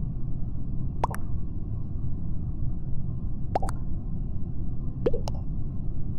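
A short game notification blips several times.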